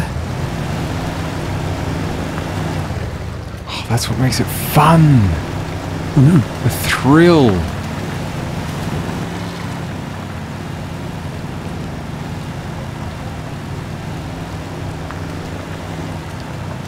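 A truck engine rumbles steadily at low revs.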